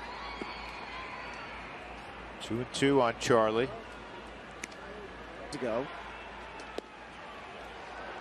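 A stadium crowd murmurs in the background.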